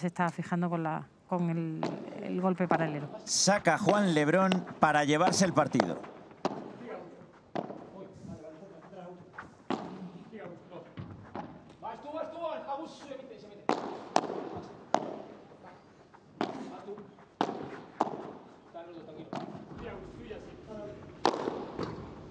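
Padel rackets strike a ball back and forth in a rally.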